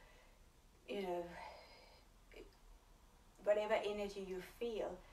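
A young woman talks calmly and clearly.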